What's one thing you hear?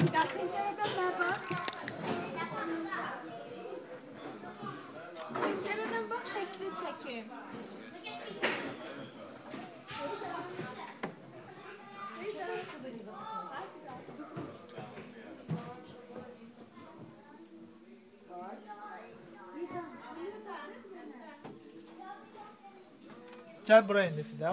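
A young girl talks and chatters brightly close by.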